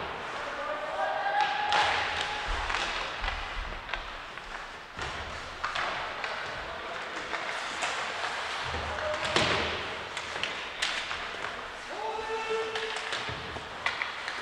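Young players shout to each other across the rink.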